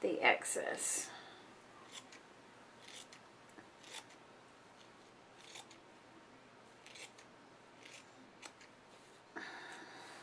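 Scissors snip through thin fabric in short cuts.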